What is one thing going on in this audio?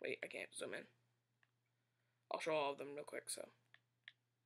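A teenage boy speaks briefly and casually, close by.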